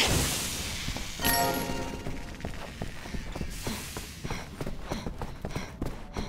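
Footsteps run quickly across a carpeted floor.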